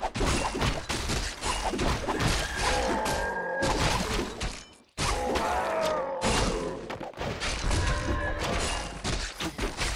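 Weapons clash and clang in a busy battle.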